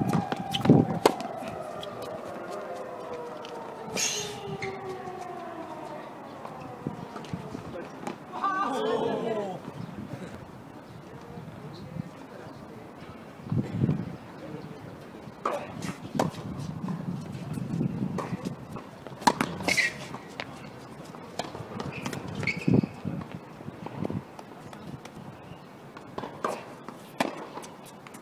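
Tennis balls are struck with rackets with sharp pops outdoors.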